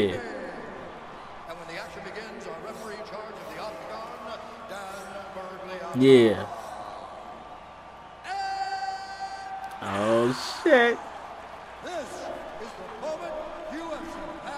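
A man announces loudly over an arena loudspeaker.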